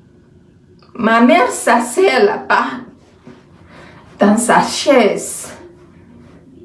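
A young woman speaks loudly and with animation, close to a microphone.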